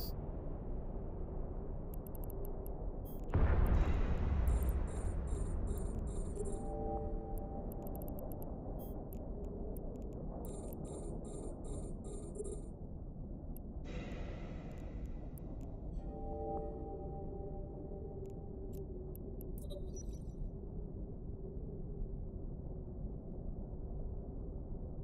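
Laser beams hum with a steady low drone.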